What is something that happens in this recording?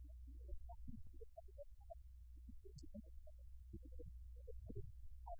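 A man speaks calmly, a little way off.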